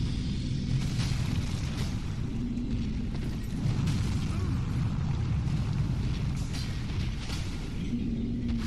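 A heavy sword swings through the air with a whoosh.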